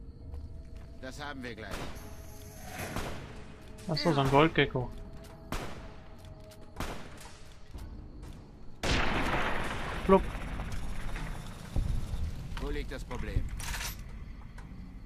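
Gunshots crack one after another.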